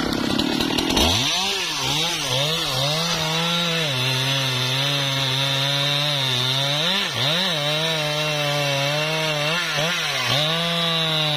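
A chainsaw cuts into a log with a steady roar.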